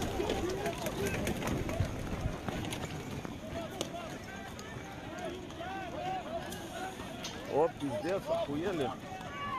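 A large crowd of men shouts and calls out nearby, outdoors.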